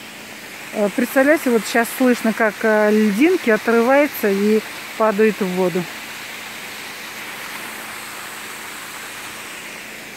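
A mountain stream rushes steadily over rocks.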